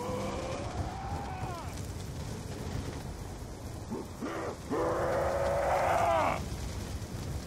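Zombies moan and groan loudly.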